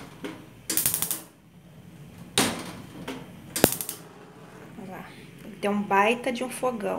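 Gas burners hiss softly with steady flames.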